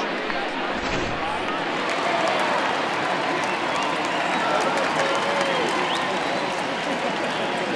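A large crowd murmurs and chatters steadily in a stadium.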